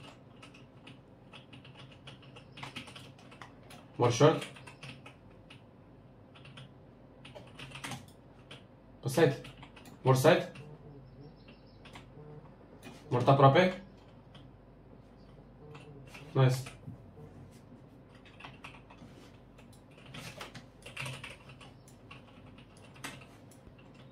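A computer mouse clicks and keys tap quickly.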